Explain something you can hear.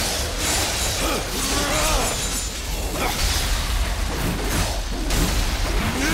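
Creatures screech and snarl.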